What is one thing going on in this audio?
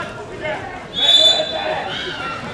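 A referee's whistle blows sharply once.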